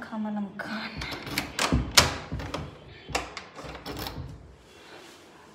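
A door handle clicks and a door opens.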